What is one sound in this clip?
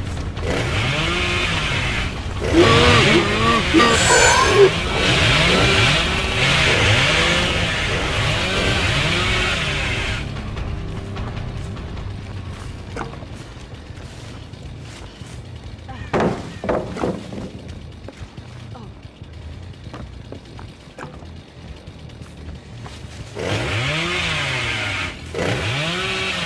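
A chainsaw roars loudly and revs.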